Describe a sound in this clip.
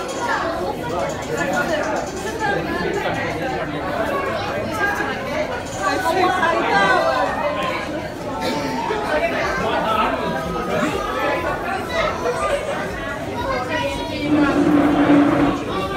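A crowd of men and women chatter close by, with several voices overlapping.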